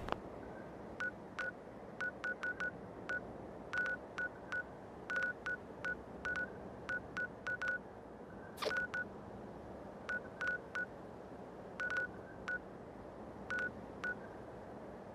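Short soft interface ticks sound as a game map cursor moves.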